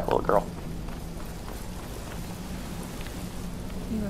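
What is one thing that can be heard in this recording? Footsteps scuff slowly on stone.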